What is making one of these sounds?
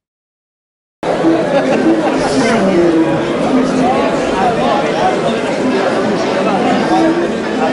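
A crowd of men chatter loudly outdoors.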